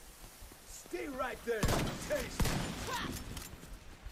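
Gunshots ring out close by.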